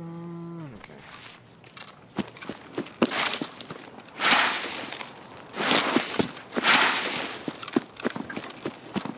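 Footsteps rustle through tall grass and brush.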